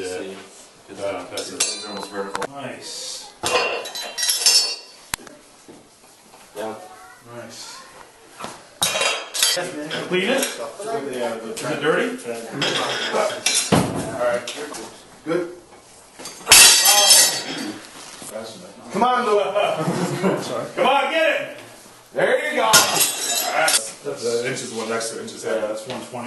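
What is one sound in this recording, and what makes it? Several men talk and call out loudly in a room with some echo.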